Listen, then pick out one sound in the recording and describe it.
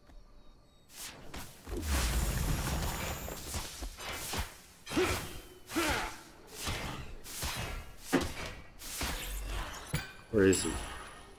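Weapons clash in quick bursts.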